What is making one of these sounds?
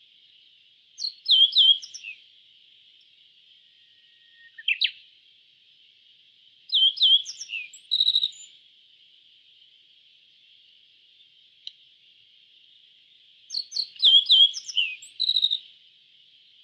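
A small songbird sings short, bright chirping phrases with pauses between them.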